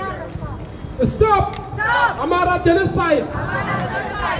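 A man speaks loudly into a handheld microphone, heard through a loudspeaker.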